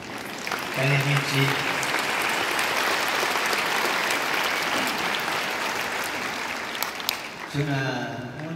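A large crowd cheers and applauds in a big echoing arena.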